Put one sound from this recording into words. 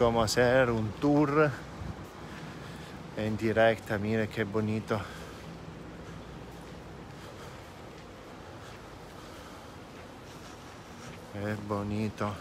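A man speaks animatedly close by.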